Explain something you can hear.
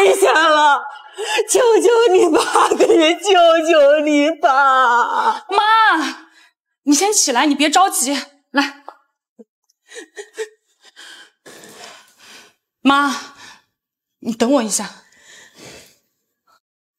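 A young woman speaks sharply and angrily, close by.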